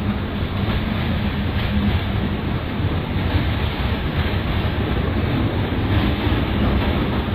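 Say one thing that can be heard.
An electric commuter train rumbles along the rails.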